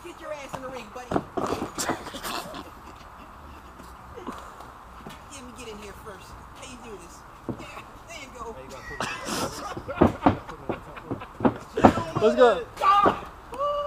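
Bodies thud onto a mat.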